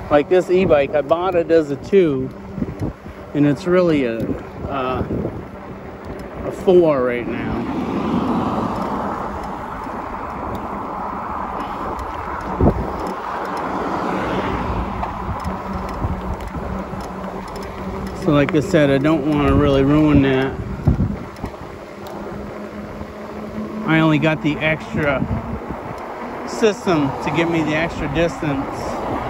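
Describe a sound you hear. Wind rushes past while an electric bike rides along a paved road.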